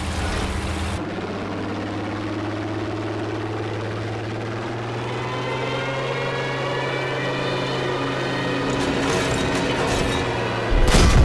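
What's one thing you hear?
Wind rushes past a diving plane.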